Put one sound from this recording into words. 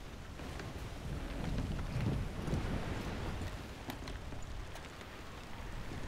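Waves wash against a wooden boat.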